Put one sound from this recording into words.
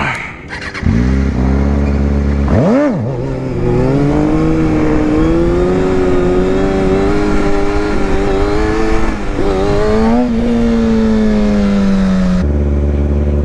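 A motorcycle engine roars and revs up and down close by.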